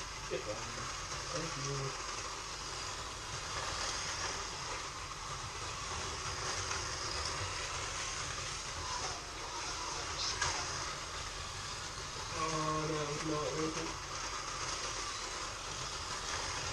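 Small electric slot cars whir steadily around a track.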